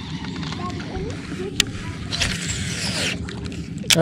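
Hands knock and rub against a fishing rod close by.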